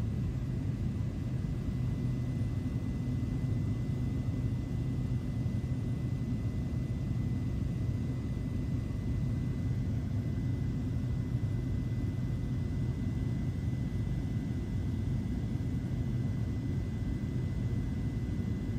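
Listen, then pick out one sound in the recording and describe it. A small plane's propeller engine drones steadily from inside the cabin.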